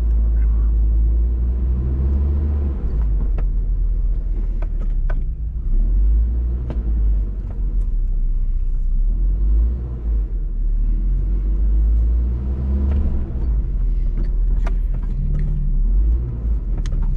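Gravel and rocks crunch and knock under tyres.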